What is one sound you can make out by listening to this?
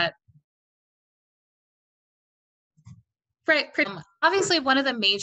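A woman speaks calmly through a microphone on an online call.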